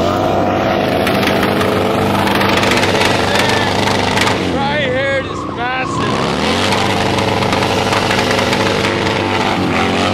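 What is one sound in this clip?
A motorcycle engine roars loudly, revving up and down.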